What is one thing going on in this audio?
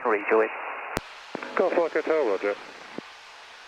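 A man speaks briefly over a headset radio.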